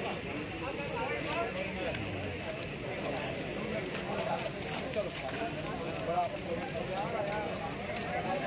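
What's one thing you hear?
A crowd of men talk and murmur together outdoors.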